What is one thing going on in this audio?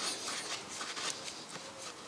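A plastic cap is twisted off with a faint scrape.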